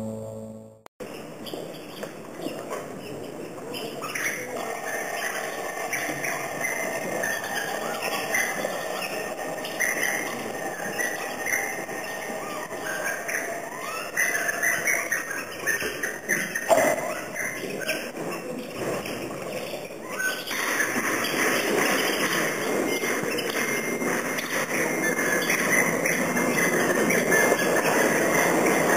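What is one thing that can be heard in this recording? A violin plays sliding, wavering notes in a large echoing hall.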